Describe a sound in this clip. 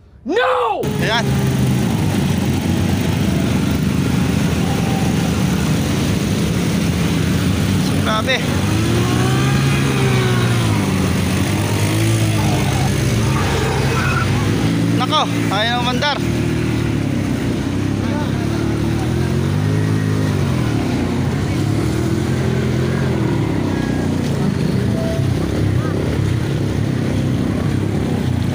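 Floodwater splashes and churns around wheels.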